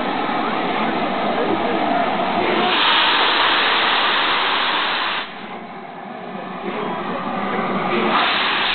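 Steam hisses loudly from a steam locomotive, softening briefly before swelling again.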